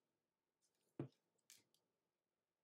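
A card taps on a table.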